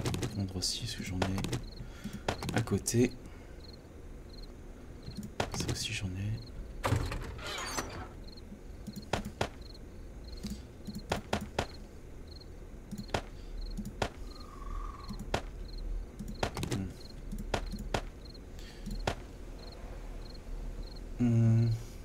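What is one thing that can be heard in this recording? Short game interface clicks sound as items are moved between slots.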